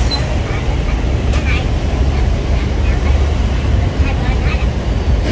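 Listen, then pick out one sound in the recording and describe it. Motorbike engines idle and rumble close by outdoors.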